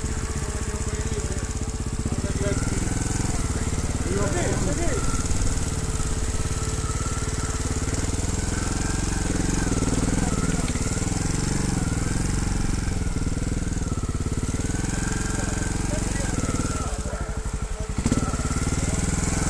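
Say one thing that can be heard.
A motorbike engine putters steadily up close.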